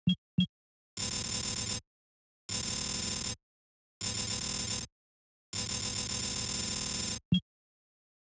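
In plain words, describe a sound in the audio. A buzzing electronic hum swells in and cuts off several times.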